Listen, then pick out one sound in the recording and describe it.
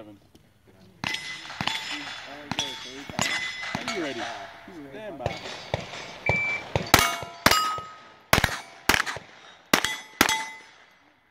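A pistol fires a rapid string of sharp, loud shots outdoors.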